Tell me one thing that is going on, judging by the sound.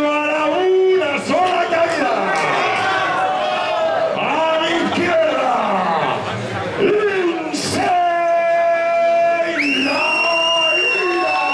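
A man announces loudly through a microphone and loudspeakers, drawing out his words in a large echoing hall.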